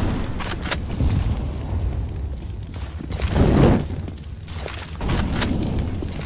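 Flames roar and crackle from a burning firebomb.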